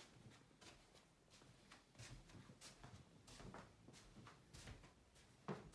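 A man's footsteps thud softly on a carpeted floor.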